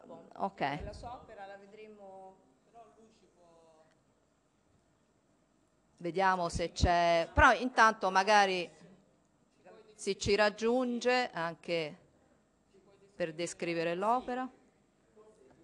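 A woman speaks calmly into a microphone, in short bursts with pauses.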